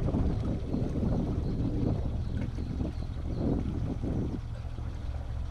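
A boat engine rumbles steadily up close.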